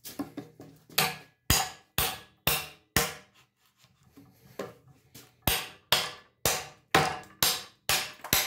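A hammer strikes a chisel into wood with sharp, regular blows.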